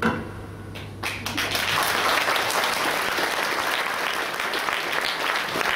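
An audience claps loudly, and the applause fills the hall.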